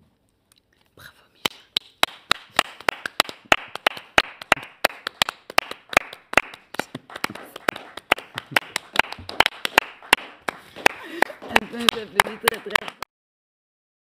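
Hands clap in lively, steady applause.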